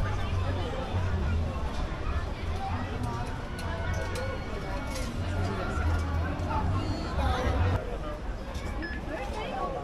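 A crowd of children and adults chatter nearby.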